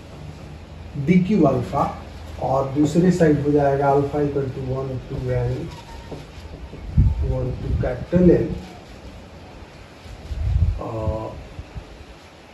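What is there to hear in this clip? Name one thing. A man speaks in a lecturing tone nearby.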